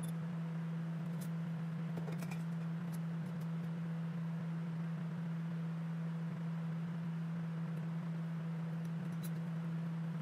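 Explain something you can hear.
A metal lid clicks and scrapes against a glass jar.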